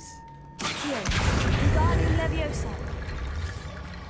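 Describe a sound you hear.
A magic spell bursts with a loud crackling blast.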